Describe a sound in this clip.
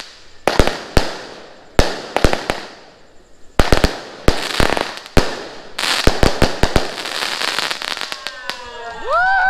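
Fireworks burst with loud, sharp bangs close by.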